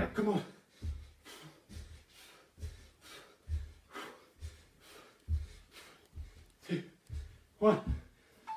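Bare feet thud softly on a carpeted floor in a steady rhythm.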